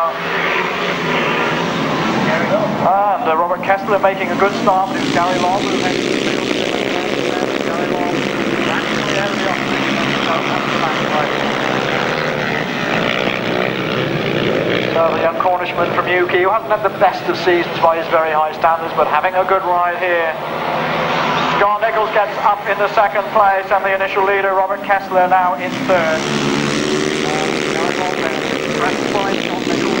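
Motorcycle engines roar loudly.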